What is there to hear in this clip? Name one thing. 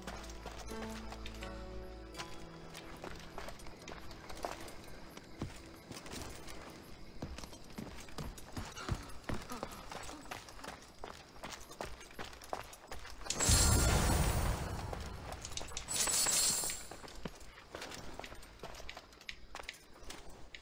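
Footsteps tread on wooden boards and stone.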